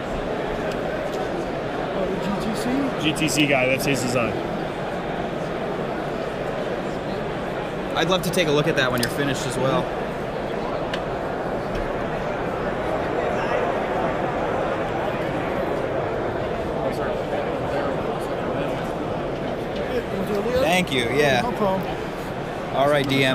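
A crowd murmurs and chatters steadily in a large, busy hall.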